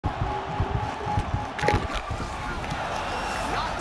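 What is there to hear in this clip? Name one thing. Punches land on a body with dull thuds.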